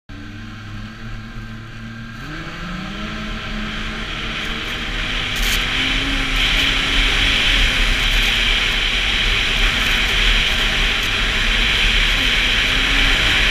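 A snowmobile engine drones steadily and rises in pitch as it speeds up.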